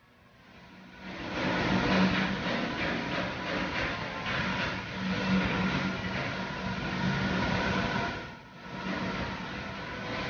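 A machine cuts metal with a hissing, crackling roar.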